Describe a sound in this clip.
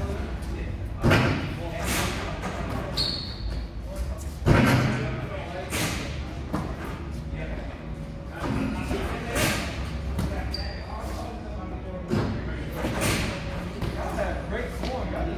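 A basketball bounces and thuds on a hard floor in a large echoing hall.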